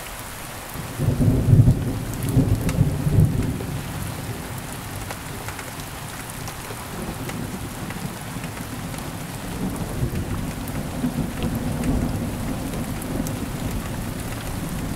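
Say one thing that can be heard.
Thunder rumbles deep and low, swelling and slowly fading.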